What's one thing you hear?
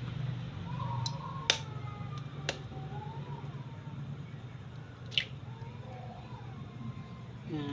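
A metal fork taps and clicks against eggshells.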